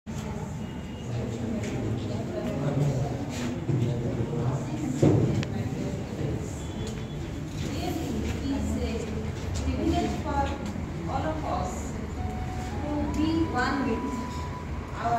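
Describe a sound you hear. A woman speaks to the room from the front.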